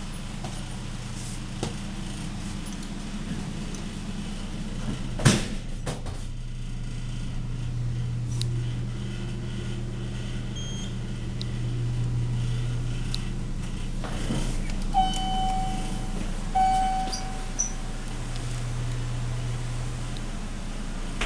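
A hydraulic elevator's pump motor hums low as the car travels.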